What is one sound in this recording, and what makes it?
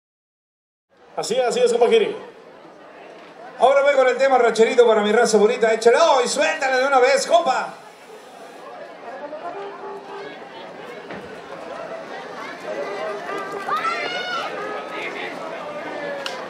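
A large brass band plays lively music.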